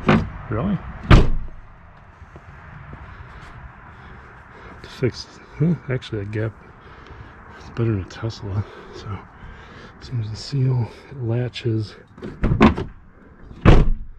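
A hand taps and rubs on a car door.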